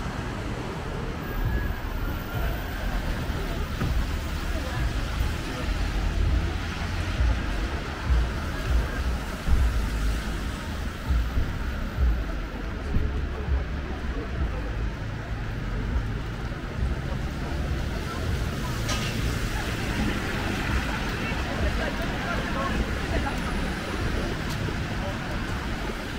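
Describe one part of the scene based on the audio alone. Footsteps tap on a wet pavement.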